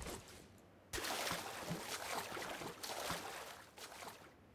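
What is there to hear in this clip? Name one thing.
A swimmer splashes through water.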